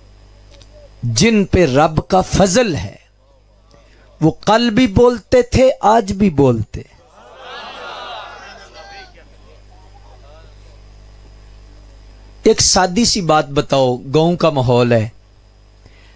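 A man speaks with emotion into a microphone, in bursts with pauses.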